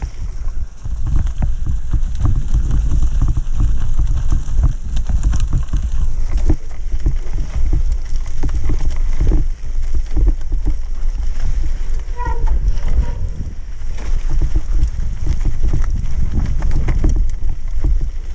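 Wind rumbles loudly across a microphone.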